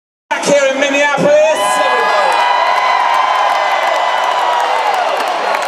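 A man sings loudly into a microphone through powerful loudspeakers.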